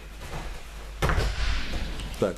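A body thuds heavily onto a mat.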